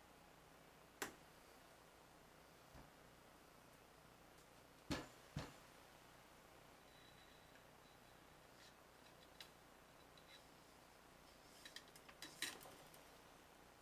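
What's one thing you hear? Metal parts of a rifle click and clack as they are handled.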